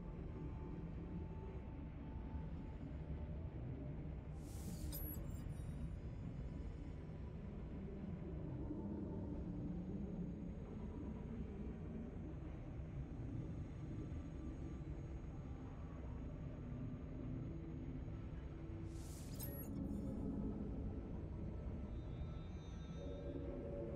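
A low, rumbling drone hums steadily throughout.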